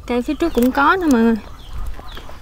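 A woman speaks brightly nearby.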